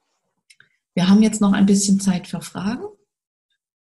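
A woman speaks briefly with animation through an online call.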